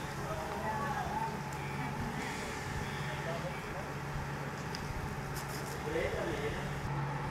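Men talk briefly in the distance.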